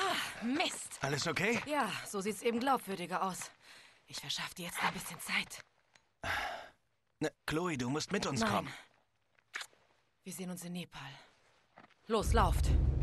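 A young woman speaks calmly.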